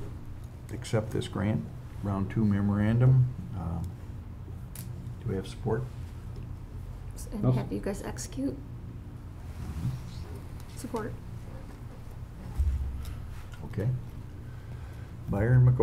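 An elderly man speaks calmly into a microphone, with pauses.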